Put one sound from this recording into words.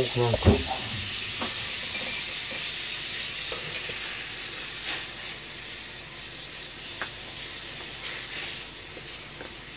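Water simmers gently in a pan.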